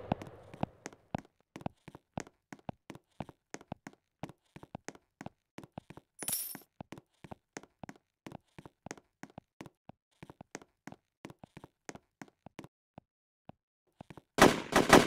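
Footsteps patter quickly and evenly as a game character runs.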